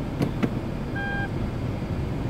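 A short electronic beep sounds from a car's dashboard.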